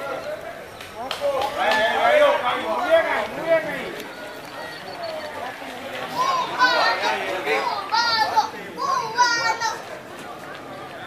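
Men and women nearby shout and cheer outdoors.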